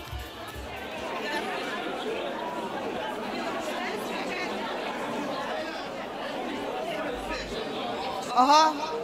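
A crowd of people chatter in the background.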